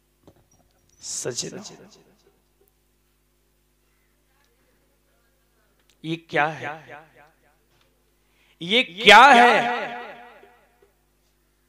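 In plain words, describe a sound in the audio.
A man sings loudly into a microphone in short phrases.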